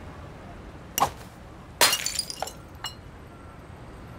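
A glass bottle smashes on a hard floor.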